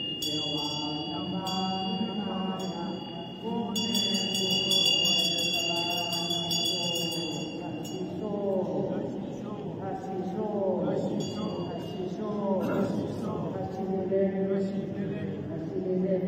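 An elderly man chants in a low, steady voice through a microphone and loudspeakers.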